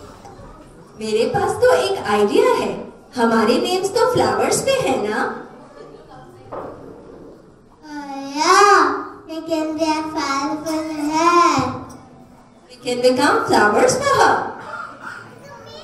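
A woman speaks warmly into a microphone, heard over a loudspeaker.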